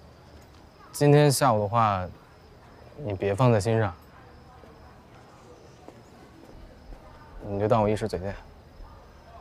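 A young man speaks calmly from close by.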